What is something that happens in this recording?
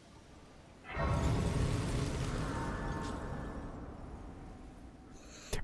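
A shimmering chime swells up and slowly fades.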